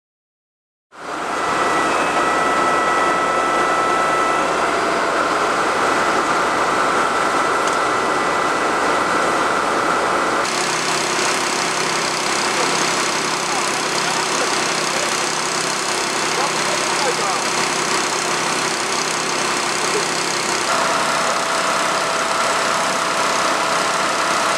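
A truck-mounted crane's engine hums steadily outdoors.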